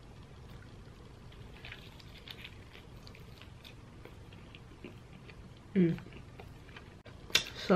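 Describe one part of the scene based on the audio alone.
A young woman chews food.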